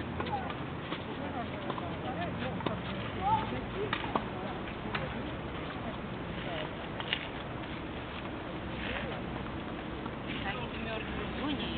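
Several adults chat faintly in the distance outdoors.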